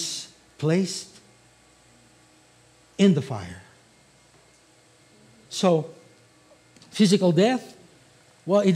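A middle-aged man speaks with emphasis through a microphone, in short bursts with pauses.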